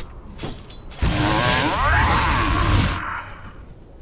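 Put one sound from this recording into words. A magical spell bursts with a loud whoosh.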